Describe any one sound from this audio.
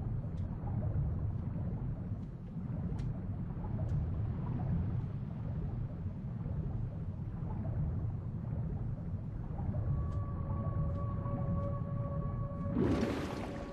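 Deep muffled underwater rumbling drones steadily.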